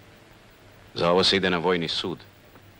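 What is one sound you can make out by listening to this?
A middle-aged man speaks firmly up close.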